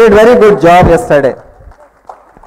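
A young boy speaks loudly through a microphone in a large hall.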